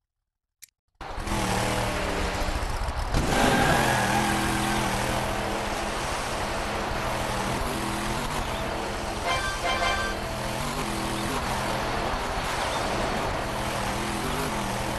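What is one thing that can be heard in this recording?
An off-road truck engine drones and revs steadily.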